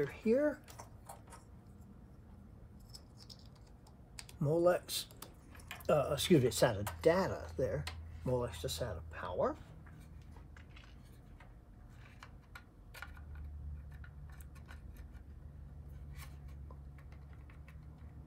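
Plastic plugs click and rattle as they are handled.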